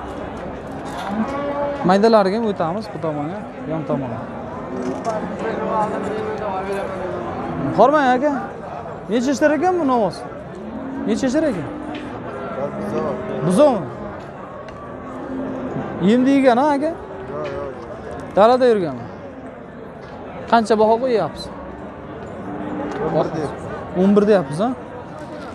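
A crowd of men murmurs in the background outdoors.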